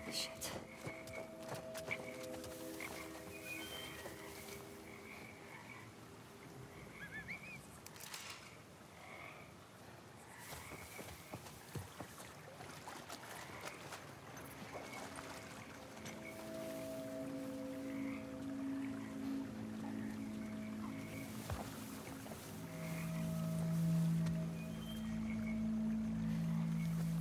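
Ferns and leaves rustle as someone creeps through undergrowth.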